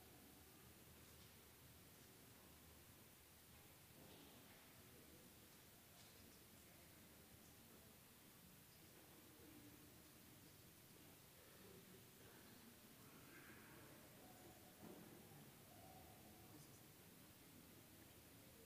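A large crowd murmurs quietly in a big echoing hall.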